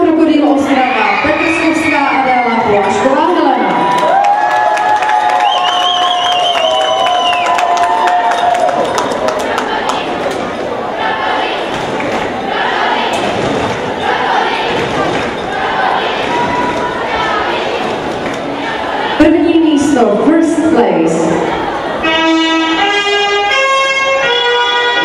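A crowd of girls chatters in a large echoing hall.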